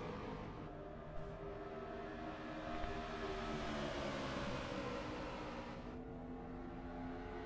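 A pack of race car engines roars loudly, swelling as the cars pass close by.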